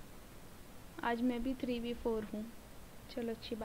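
A young woman speaks casually into a microphone.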